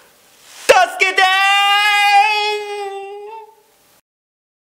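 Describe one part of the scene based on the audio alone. A young man lets out a long, muffled scream that slowly fades.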